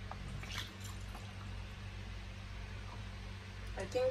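Liquid trickles through a funnel into a glass bottle.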